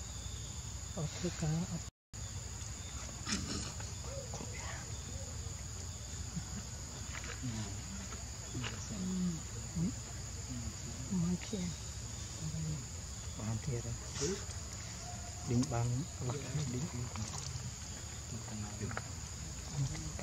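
A baby monkey whimpers and squeaks softly, close by.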